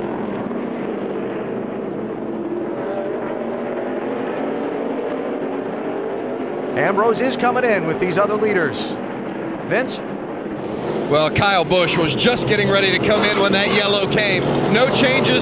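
Many race car engines roar steadily as cars speed along a track.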